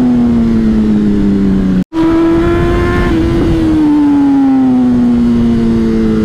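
A motorcycle engine drones steadily at speed, its pitch slowly shifting.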